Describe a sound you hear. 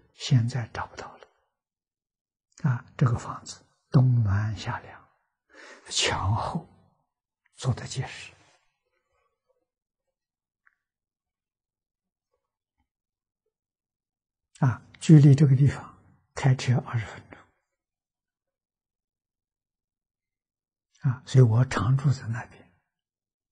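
An elderly man speaks calmly and warmly into a close microphone, with long pauses.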